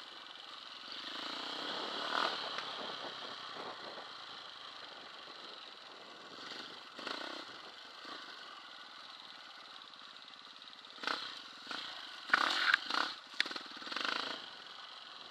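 A motorbike jolts and rattles over bumpy ground.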